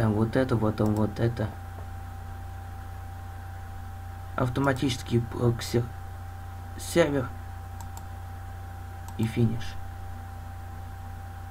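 A mouse button clicks.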